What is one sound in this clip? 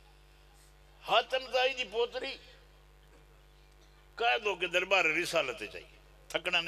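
An elderly man speaks loudly and with feeling into a microphone, heard through a loudspeaker.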